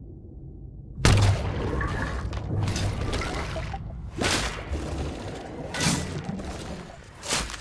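Water splashes and churns as a saw blade plunges under ice.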